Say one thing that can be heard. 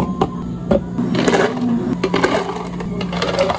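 Ice cubes rattle as they are scooped into plastic cups.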